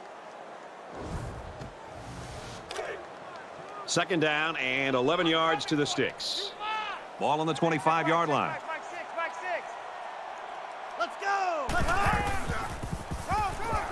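Football players' pads crash together in a tackle.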